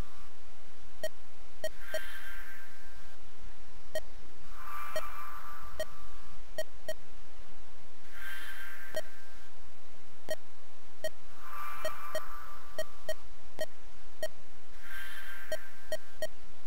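Short electronic blips tick in quick bursts.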